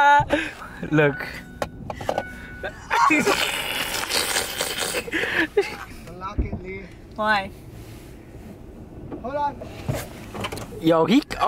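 A young man talks animatedly from just outside a car window.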